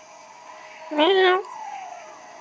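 A kitten meows loudly once.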